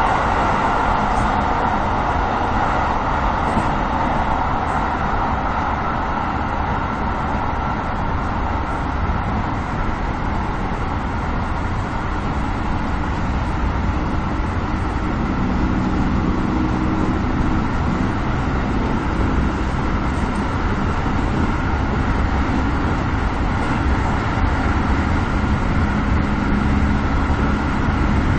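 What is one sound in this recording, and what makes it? A train's motor whines steadily.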